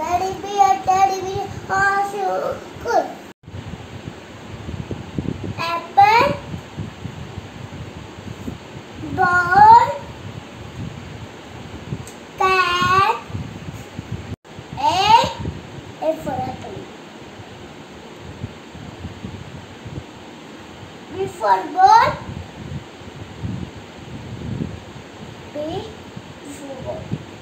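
A young boy speaks close by, in short sing-song bursts.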